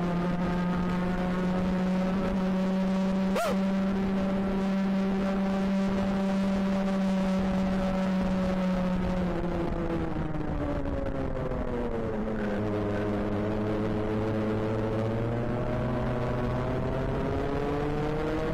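A kart engine drones loudly up close, its pitch dipping and rising through the corners.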